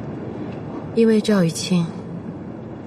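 A young woman speaks quietly and tensely, close by.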